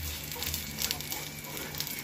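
A hand pats and presses dough in a frying pan.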